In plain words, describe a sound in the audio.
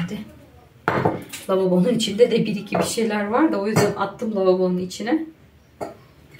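A middle-aged woman speaks calmly close by.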